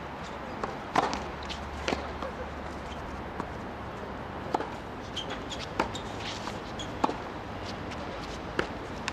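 A racket strikes a tennis ball with sharp pops.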